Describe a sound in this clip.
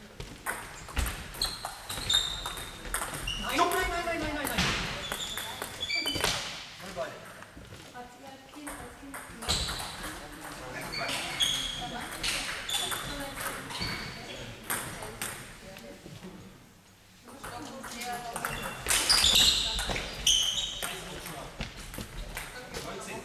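A table tennis ball clicks back and forth on paddles and a table in a large echoing hall.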